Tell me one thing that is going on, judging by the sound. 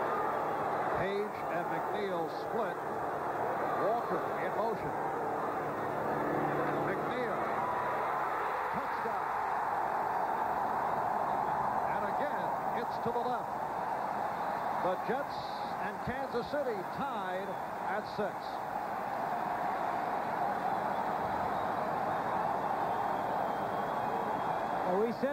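A large crowd roars and cheers in a huge open stadium.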